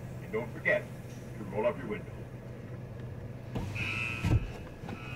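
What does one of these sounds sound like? A car engine idles steadily, heard from inside the car.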